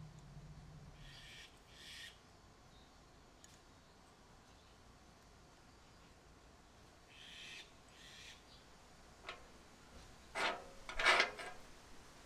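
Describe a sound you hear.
Metal brake parts clink and scrape together in someone's hands.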